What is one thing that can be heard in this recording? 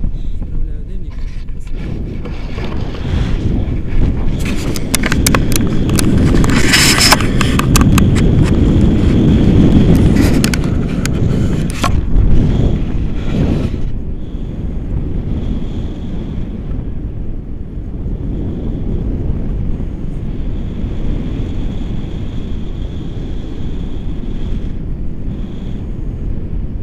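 Strong wind roars and buffets against a microphone outdoors.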